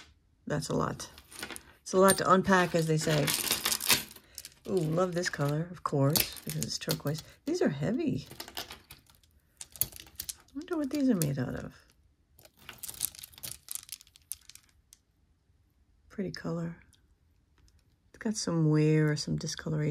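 Plastic beads clack together as a necklace is handled.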